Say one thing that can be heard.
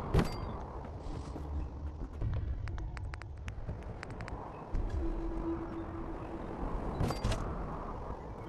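Short game menu clicks tick several times.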